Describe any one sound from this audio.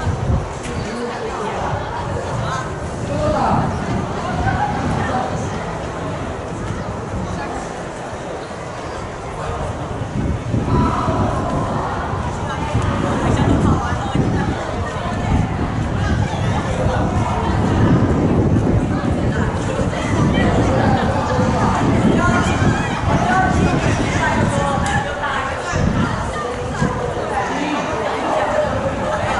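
A crowd of children chatters outdoors.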